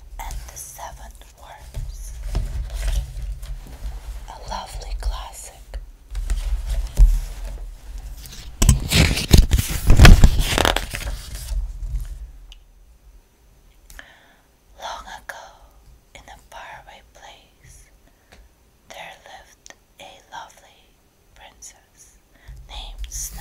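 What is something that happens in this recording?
Fingernails tap and scratch on a book's paper pages.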